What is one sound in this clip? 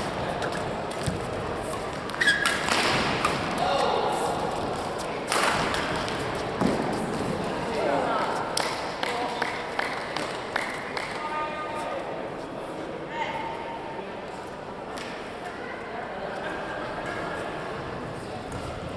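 Young men call out and talk in a large echoing hall.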